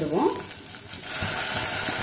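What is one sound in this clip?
Tomato pieces drop into a pot.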